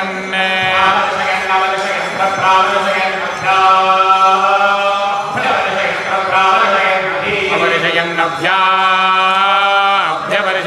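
Several men sing together through microphones.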